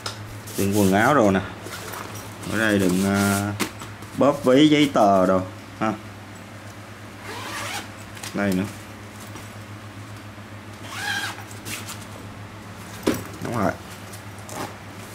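Fabric rustles as hands open the pockets of a soft bag.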